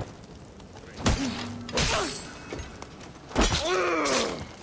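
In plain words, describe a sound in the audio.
A blade strikes a body with a heavy thud.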